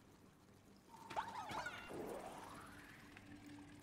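A small spaceship whooshes away with a gliding hum.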